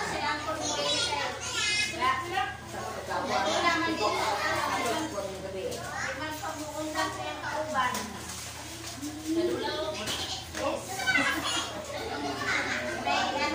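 A woman talks nearby.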